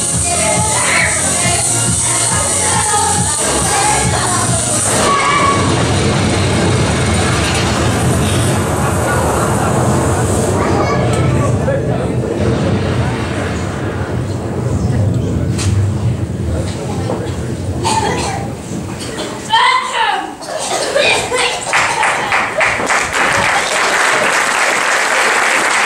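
Music plays loudly through loudspeakers in a large echoing hall.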